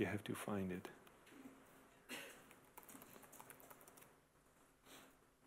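Keys clatter on a keyboard as text is typed.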